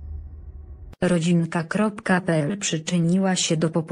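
A young woman speaks calmly, close up.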